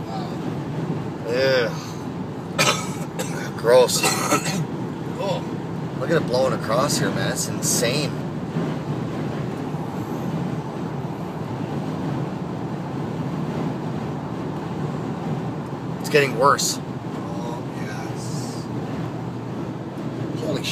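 A car drives steadily along a road with a low rumble of tyres and engine.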